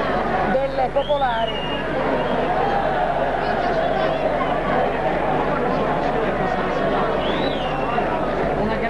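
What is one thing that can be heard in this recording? Whistles shrill from the crowd.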